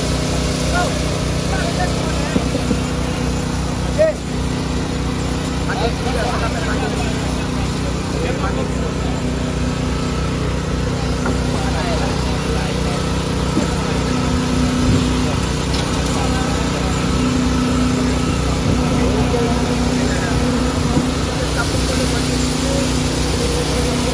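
An excavator engine rumbles steadily throughout.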